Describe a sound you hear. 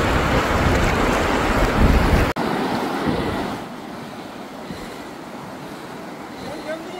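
A shallow river rushes and gurgles over stones close by.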